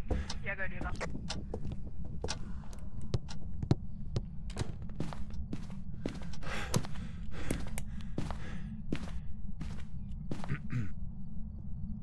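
Footsteps thud on a wooden floor indoors.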